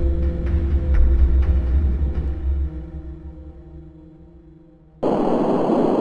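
Low electronic game music plays and slowly fades away.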